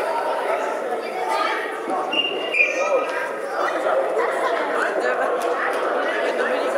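Young players shout and call out in a large echoing hall.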